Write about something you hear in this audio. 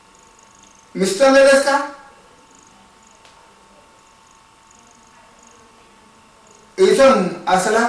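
An elderly man speaks calmly and with animation, close by.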